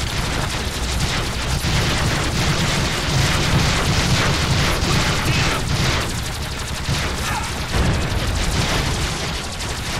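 Loud explosions boom.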